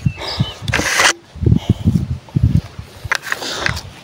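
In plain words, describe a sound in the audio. Footsteps scuff slowly on sand.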